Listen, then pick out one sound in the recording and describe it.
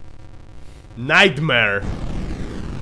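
A man shouts in triumph close to a microphone.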